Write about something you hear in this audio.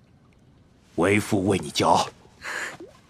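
A middle-aged man speaks warmly.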